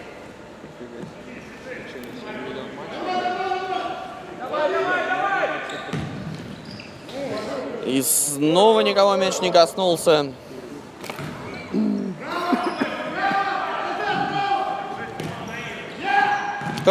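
A ball thuds as players kick it in an echoing hall.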